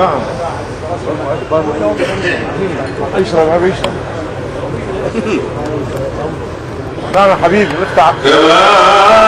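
A crowd of men chatters and murmurs nearby.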